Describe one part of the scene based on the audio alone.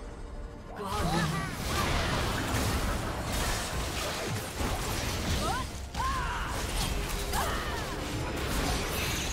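Magic spells whoosh and crackle in a fast video game battle.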